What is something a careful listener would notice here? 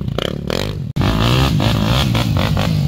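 A motorbike engine revs loudly.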